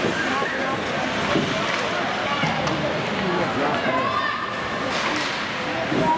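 Skates scrape and carve across the ice.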